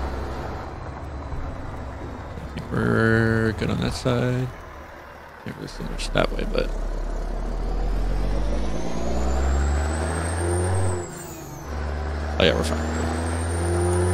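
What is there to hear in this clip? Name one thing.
A truck engine rumbles and revs up through the gears.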